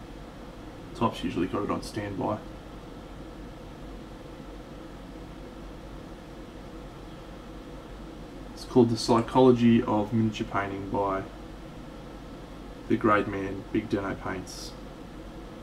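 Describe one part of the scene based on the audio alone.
A man talks calmly in short bursts, close to a microphone.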